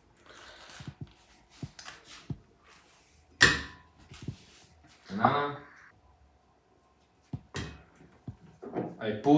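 Glass jars and a blender jug clink and knock.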